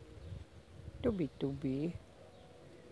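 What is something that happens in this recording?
A pigeon coos softly nearby.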